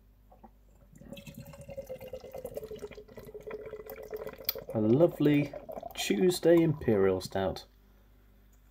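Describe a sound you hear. Beer pours from a can into a glass, gurgling and glugging.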